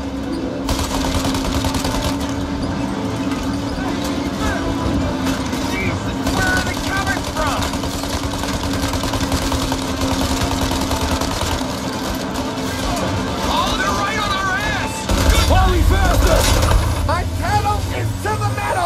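A truck engine rumbles steadily.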